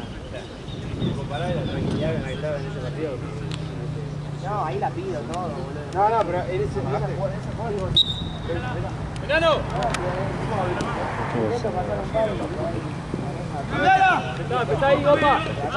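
Young men shout and call out to each other on an open outdoor field.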